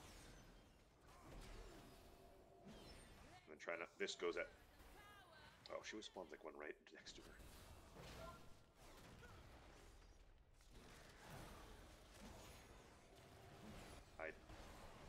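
Game spell effects crackle and whoosh in bursts.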